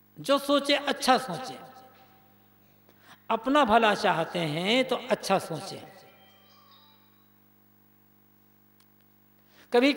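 An elderly man speaks calmly and slowly into a microphone, with pauses.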